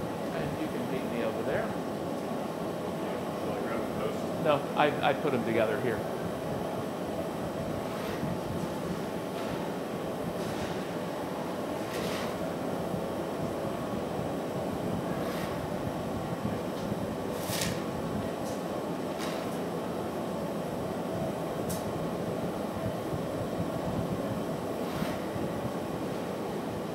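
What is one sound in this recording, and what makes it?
A glass furnace roars steadily.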